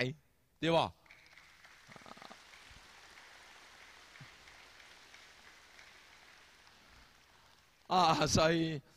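A large audience laughs and murmurs.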